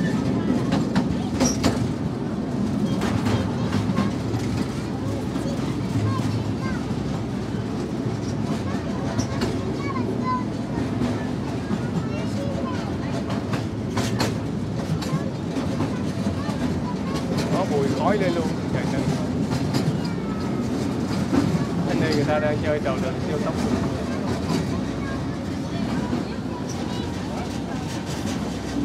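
A small ride train rumbles steadily along its track.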